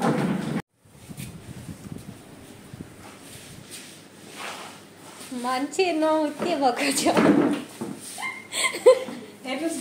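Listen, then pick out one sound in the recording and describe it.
A wet mop swishes across a tiled floor.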